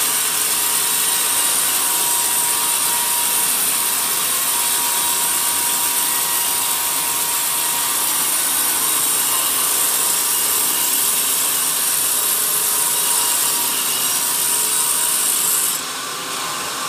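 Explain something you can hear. A band saw cuts through a log with a steady, loud hiss.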